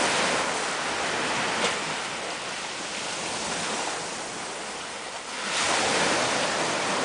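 Waves wash and foam against rocks and pebbles, swelling and easing.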